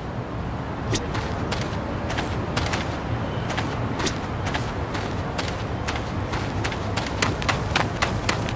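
Footsteps run across hard ground.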